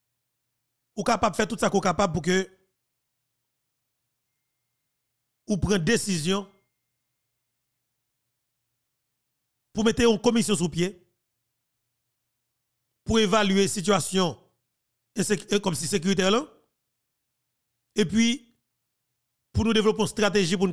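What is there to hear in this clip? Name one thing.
A young man speaks calmly into a close microphone, in short bursts with pauses.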